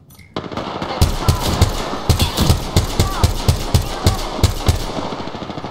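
A rifle fires a rapid string of shots.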